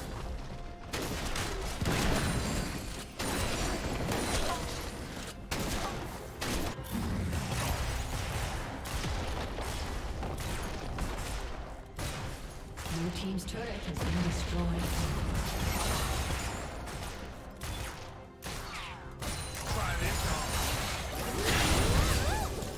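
Game spell effects and impacts crackle and boom during a fight.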